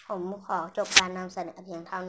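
A young boy claps his hands once.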